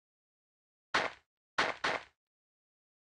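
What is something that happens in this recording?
A piñata bursts with sharp pops.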